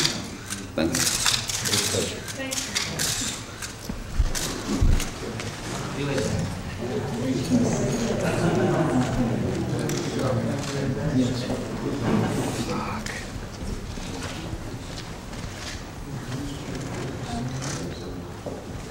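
An elderly man talks cheerfully, close by.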